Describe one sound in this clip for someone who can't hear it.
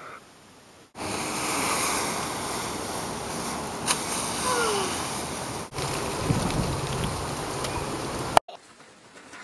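A rake rustles and scrapes through dry leaves.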